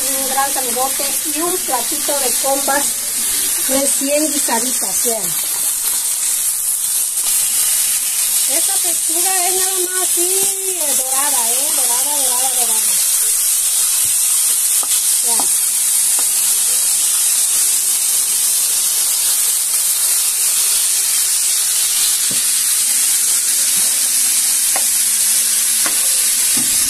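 Food sizzles and hisses in a hot pan.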